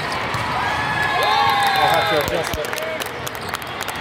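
Young women shout and cheer loudly.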